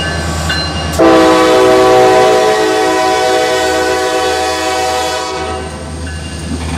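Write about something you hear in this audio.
A locomotive horn blasts loudly and close.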